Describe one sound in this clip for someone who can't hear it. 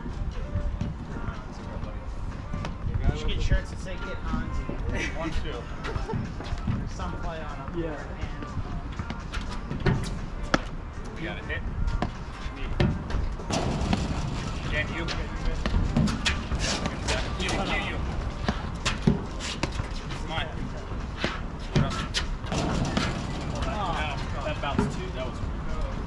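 Men talk and call out to each other outdoors.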